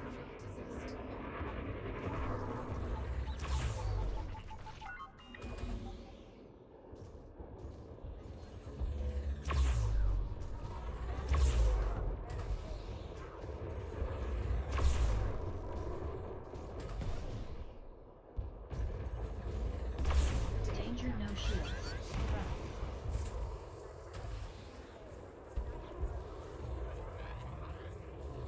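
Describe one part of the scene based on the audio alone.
Laser guns fire in short zapping bursts.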